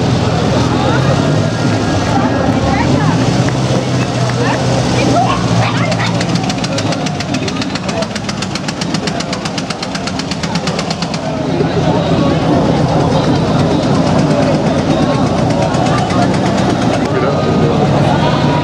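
An accordion plays a lively folk tune.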